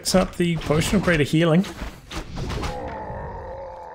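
Weapons clash and strike in a fantasy game battle.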